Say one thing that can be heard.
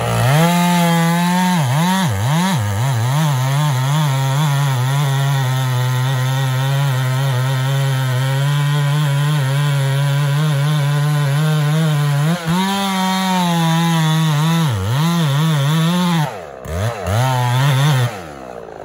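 A chainsaw engine runs loudly close by, revving up and down.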